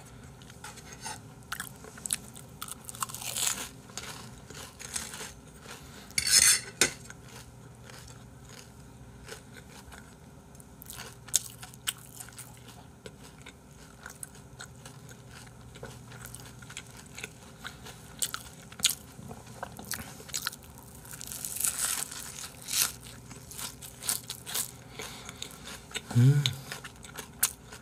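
A young man chews and crunches food close to a microphone.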